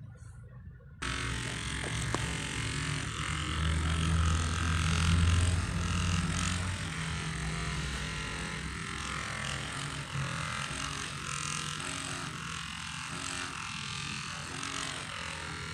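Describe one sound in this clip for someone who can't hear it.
A massage gun buzzes steadily against a person's back.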